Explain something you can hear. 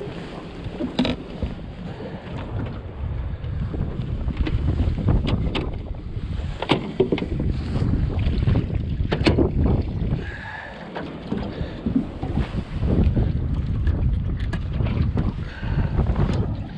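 Gear knocks against the deck of a boat.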